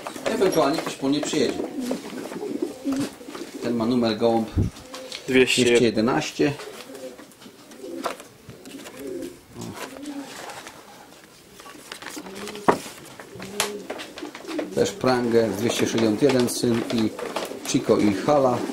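A middle-aged man talks calmly nearby.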